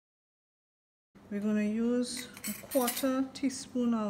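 A metal spoon clinks against a saucepan.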